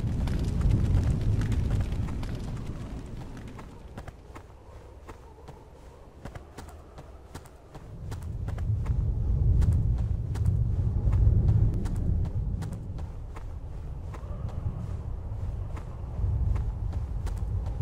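Footsteps tread steadily on rocky ground.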